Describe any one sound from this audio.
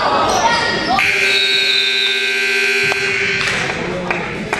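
A loud buzzer sounds steadily for a couple of seconds.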